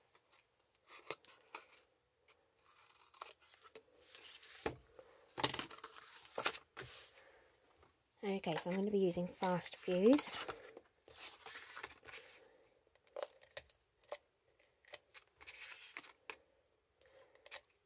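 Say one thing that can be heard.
Scissors snip through stiff card.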